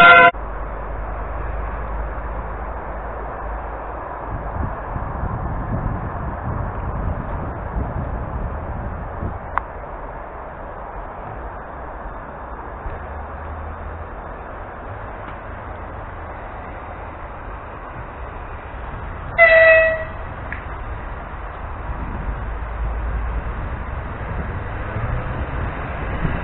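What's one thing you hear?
A train rumbles low and steadily nearby.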